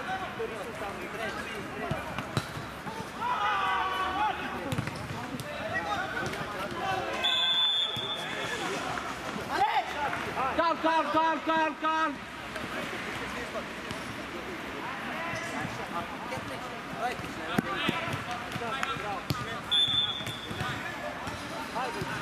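Men shout to one another outdoors.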